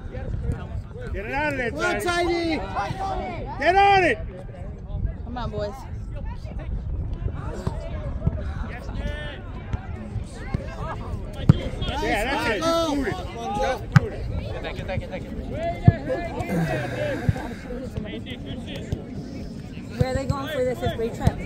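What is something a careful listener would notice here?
Young men and spectators shout and call out across an open field.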